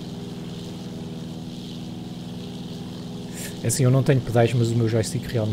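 A small propeller engine hums steadily.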